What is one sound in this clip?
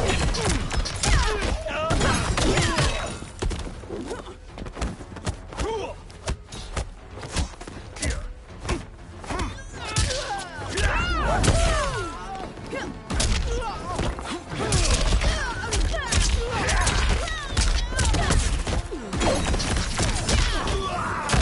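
A burst of fire whooshes.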